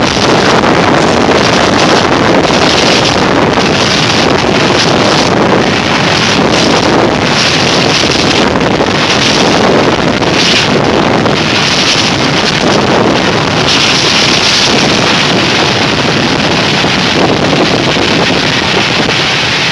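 Wind rushes over the microphone as a rider speeds downhill.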